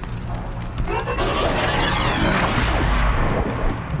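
An explosion bursts with a roaring crackle.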